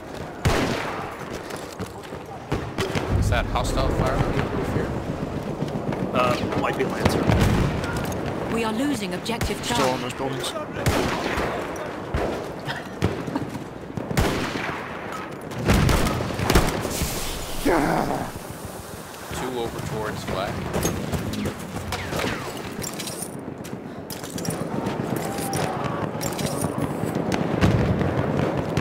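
Footsteps thud quickly over hard ground and sand.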